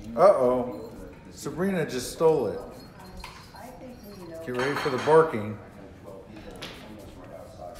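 Dog claws click on a hard floor.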